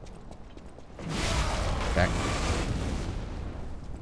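A loud explosion bursts and crackles.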